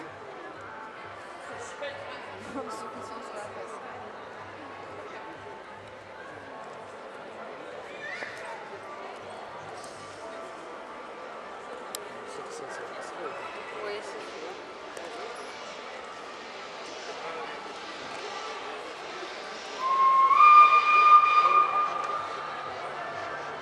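A crowd chatters and murmurs nearby.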